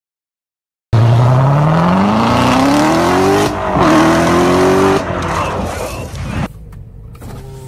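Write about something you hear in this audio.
A sports car engine roars, climbing in pitch as the car speeds away and fades.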